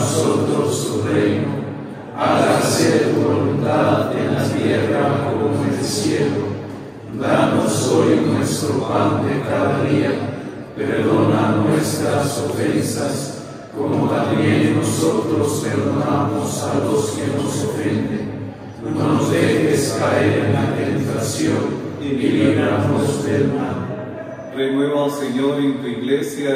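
A group of men chant together in unison, echoing in a large hall.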